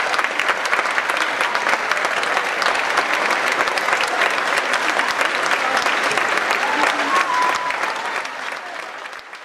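A crowd of children shouts and cheers.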